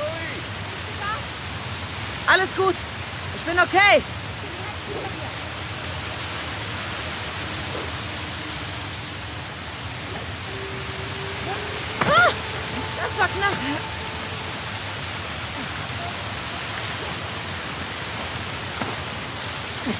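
A waterfall roars and splashes steadily close by.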